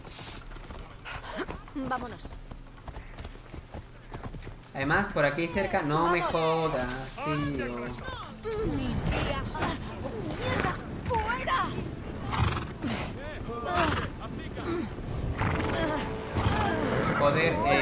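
A horse's hooves clop on a stone path at a trot.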